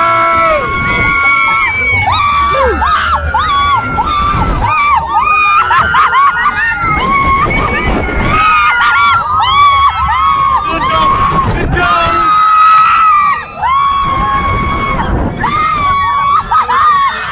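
A fairground ride rumbles and whooshes as it swings.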